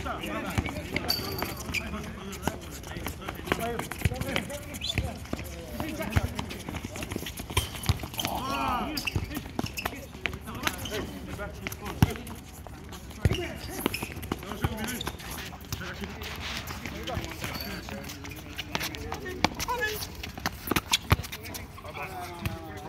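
Shoes scuff and squeak on the court.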